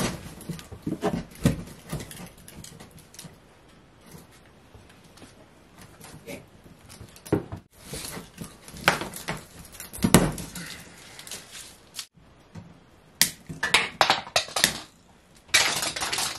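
Wires rustle and click as hands twist them together.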